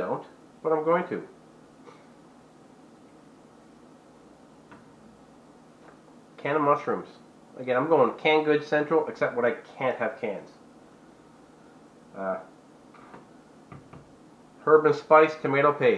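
A man speaks calmly close by, in bursts with pauses.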